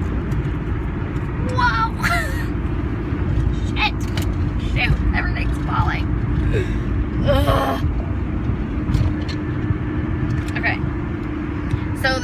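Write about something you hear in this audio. A car engine hums steadily with low road rumble inside the car.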